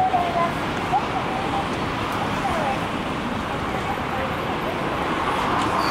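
A car drives past on the road.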